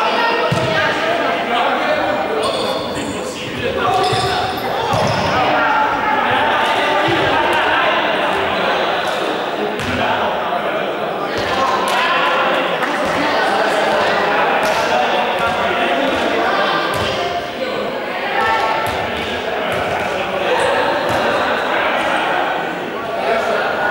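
Young people shout and call out to each other in a large echoing hall.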